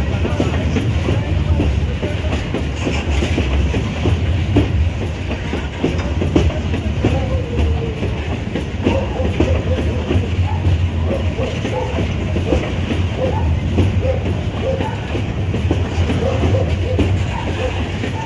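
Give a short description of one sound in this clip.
Steel wheels clack and squeal on the rails.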